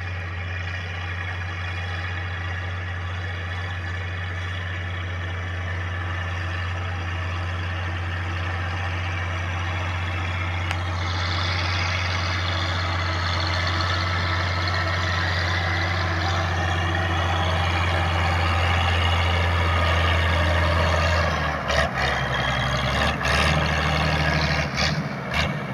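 A plough scrapes and crunches through dry soil.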